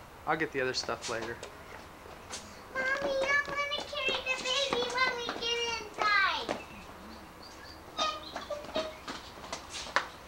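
A young woman talks brightly close by.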